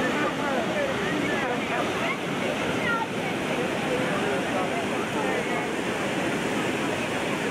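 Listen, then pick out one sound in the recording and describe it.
Muddy floodwater rushes past steadily.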